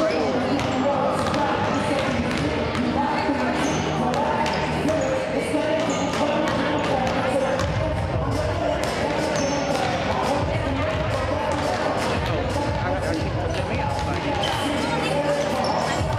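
Boys call out and chatter across an echoing gym.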